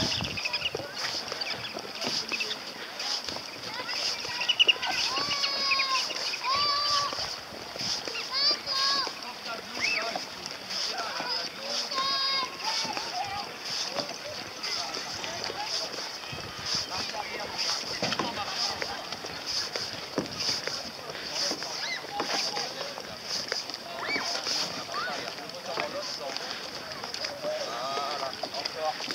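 Small waves lap against a concrete slipway.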